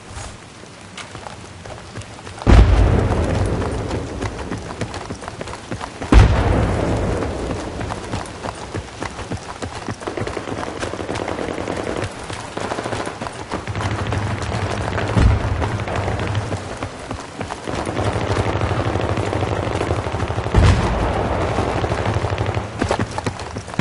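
Footsteps run across hard pavement.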